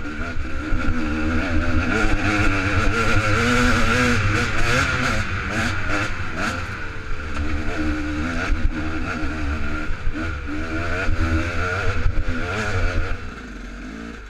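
A dirt bike engine revs and roars over a rough trail.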